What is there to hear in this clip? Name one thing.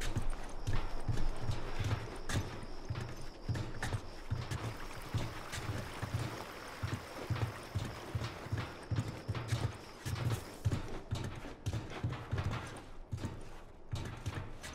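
Footsteps crunch steadily on gravel and grass.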